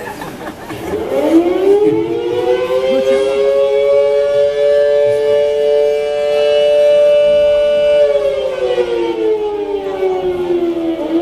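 Electric guitars ring out in a long held chord that slides down at the end.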